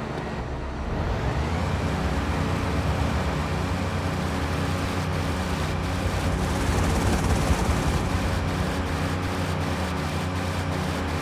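A motorboat engine roars as the boat speeds across the water.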